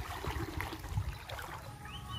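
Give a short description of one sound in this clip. Water sloshes around a man's legs as he wades through a shallow stream.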